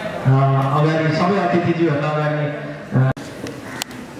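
A man speaks over a loudspeaker.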